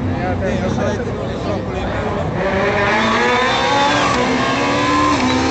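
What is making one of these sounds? A rally car engine roars and revs loudly as the car speeds past close by.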